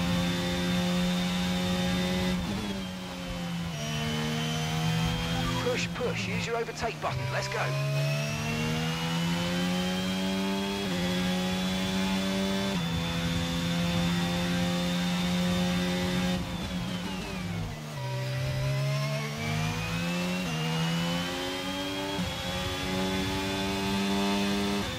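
A racing car engine screams at high revs, dropping in pitch as it shifts down for corners and rising again as it speeds up.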